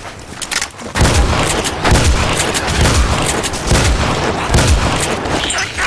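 A shotgun fires repeatedly in loud booming blasts.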